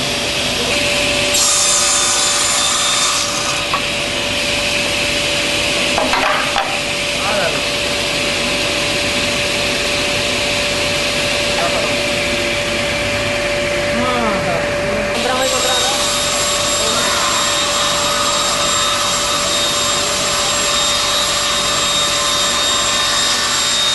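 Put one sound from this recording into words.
A table saw whirs as its blade cuts through board.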